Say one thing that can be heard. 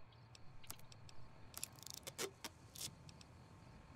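Soft electronic clicks tick as menu items are selected.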